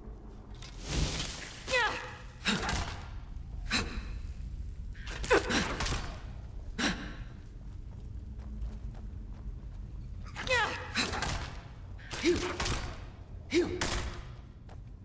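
A weapon swings and strikes with sharp thuds.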